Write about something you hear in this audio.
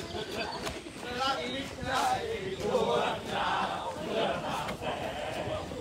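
Several young men and women talk and call out while running outdoors.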